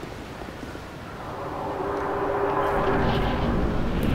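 A low whooshing rumble swells and holds.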